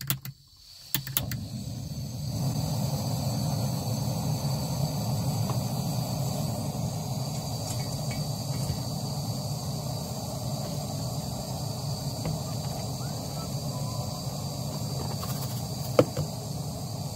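A gas stove burner roars steadily.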